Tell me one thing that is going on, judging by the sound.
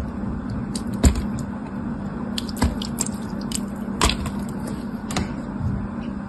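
Small hard pieces click as they drop onto a hard surface.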